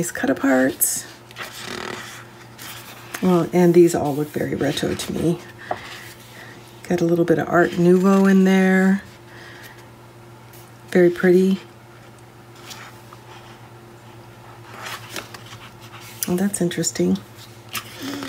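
Stiff paper sheets rustle and flap as they are turned over.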